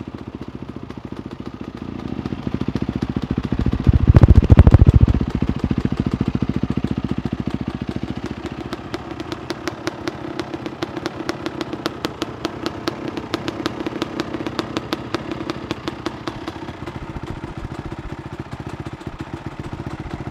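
A motorcycle engine idles close by with a rapid, steady putter.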